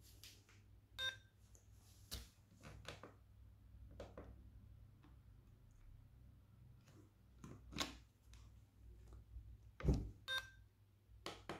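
A small electronic device beeps briefly.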